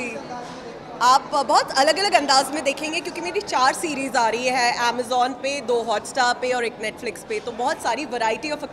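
A young woman speaks animatedly and close into microphones.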